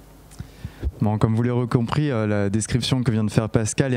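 A man speaks into a microphone through a loudspeaker in an echoing room.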